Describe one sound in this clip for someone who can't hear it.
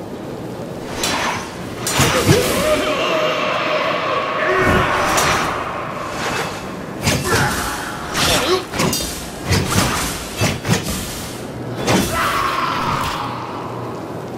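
Explosions boom in loud bursts.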